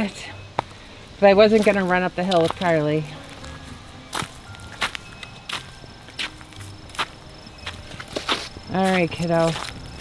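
Footsteps crunch on dry dirt and twigs.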